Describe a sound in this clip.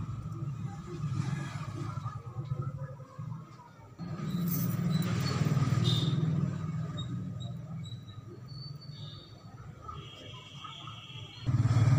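Small metal rings click and tap softly.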